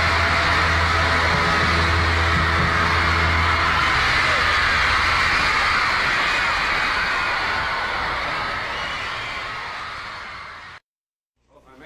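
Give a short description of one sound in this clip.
A rock band plays loudly with electric guitars and drums, then slowly fades.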